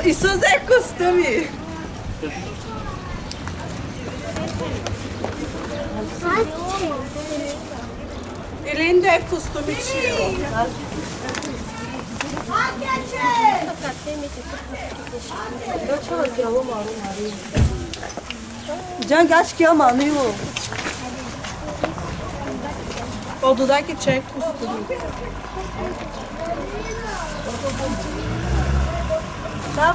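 Women and children chatter nearby.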